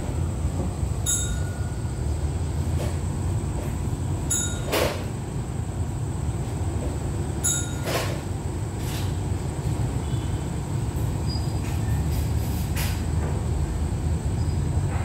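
A train engine idles nearby with a steady low rumble.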